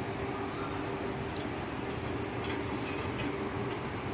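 Oil trickles through a strainer into a metal bowl.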